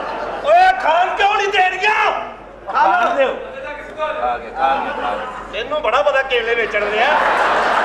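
A woman talks back loudly and playfully.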